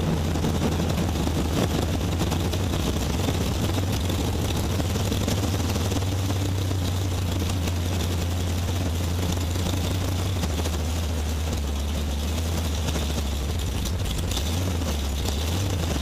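A car's body rattles and vibrates as it drives.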